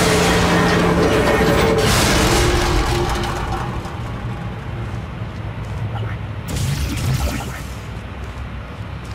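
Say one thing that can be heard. Old-fashioned music plays from a gramophone.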